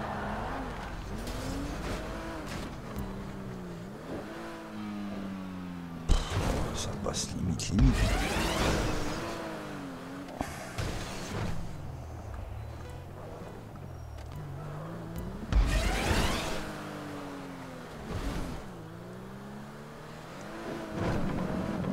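A van engine revs up and down.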